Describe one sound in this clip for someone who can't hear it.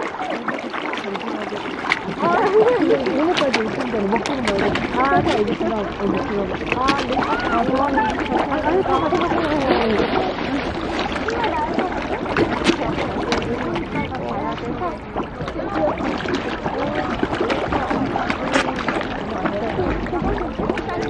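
A crowd of fish splashes and slurps at the water's surface close by.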